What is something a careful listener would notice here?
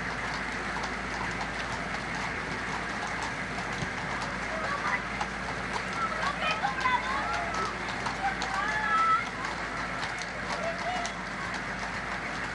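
A crowd cheers and calls out along a road outdoors.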